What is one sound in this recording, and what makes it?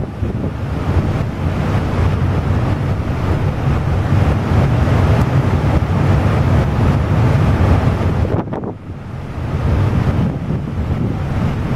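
A ship's hull grinds and crunches through pack ice.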